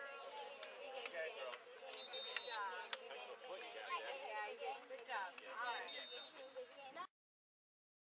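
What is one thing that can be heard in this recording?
Young girls chatter and call out excitedly outdoors.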